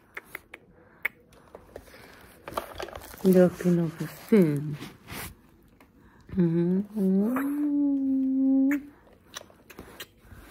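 A woman kisses a baby with soft smacking sounds.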